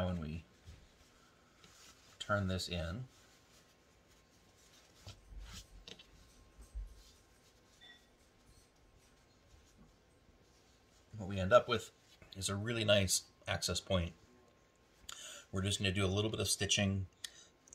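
Fabric rustles softly as hands fold and turn it.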